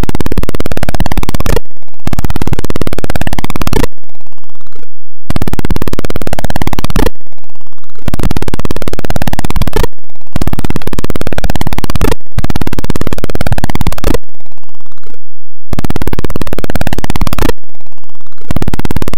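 Harsh, buzzing electronic game tones sweep upward in repeated bursts, with short pauses between them.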